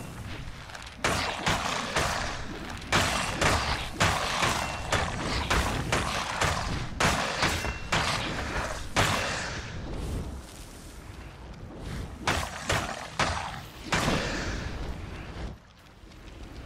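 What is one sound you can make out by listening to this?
Bones clatter and scatter as skeletons break apart.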